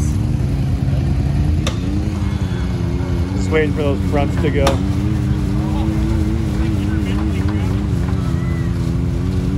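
An off-road vehicle's engine rumbles steadily nearby.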